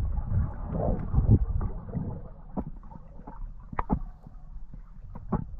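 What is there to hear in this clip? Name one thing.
Faint clicks and crackles sound underwater.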